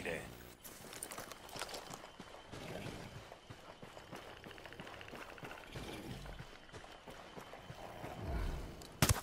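Footsteps crunch and rustle through leafy undergrowth.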